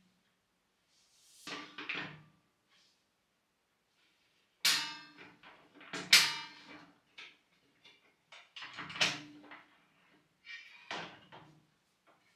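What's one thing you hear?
A wooden desk top creaks and knocks as it is tilted down flat.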